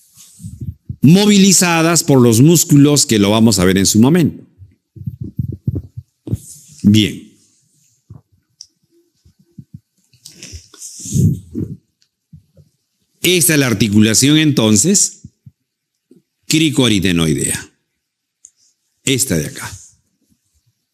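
An elderly man speaks calmly into a close microphone, in bursts with pauses.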